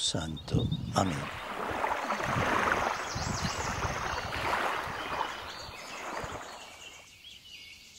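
Small waves wash onto a shore.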